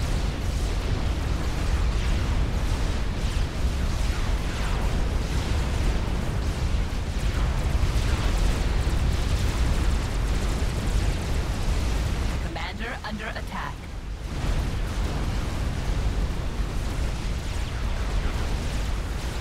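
Explosions boom and rumble steadily in a large battle.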